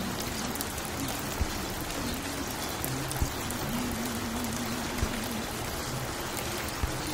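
Soft, low music plays from a record player.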